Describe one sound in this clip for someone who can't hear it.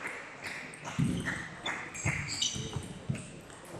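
A table tennis ball clicks off paddles and the table in a large echoing hall.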